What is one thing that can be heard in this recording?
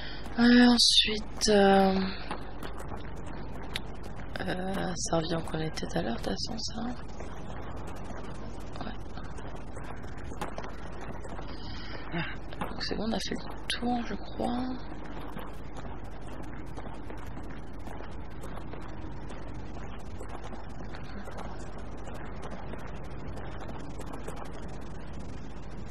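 Footsteps crunch through grass and gravel.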